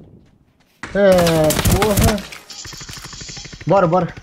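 Rapid gunshots crack close by.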